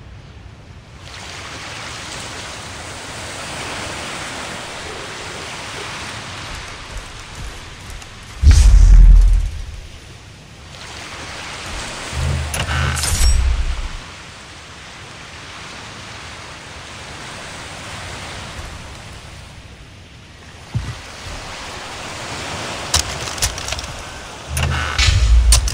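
Waves wash gently on a nearby shore.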